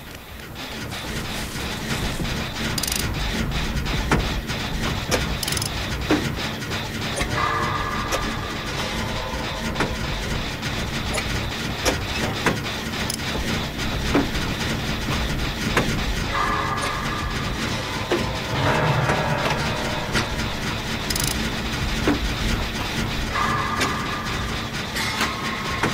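Metal parts rattle and clank as an engine is repaired by hand.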